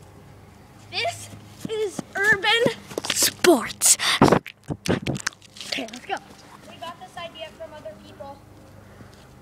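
A young boy talks excitedly close to the microphone.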